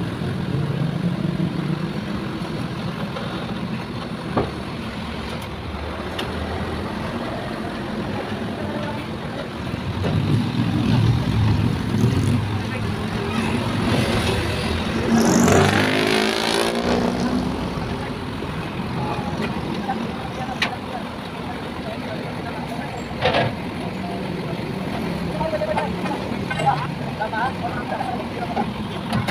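A truck engine idles nearby with a steady low rumble.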